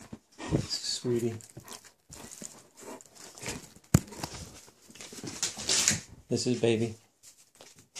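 A hand pats and rubs a dog's fur.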